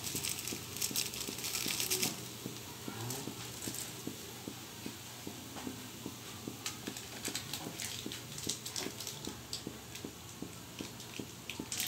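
Bean sprouts sizzle and crackle in a hot pan.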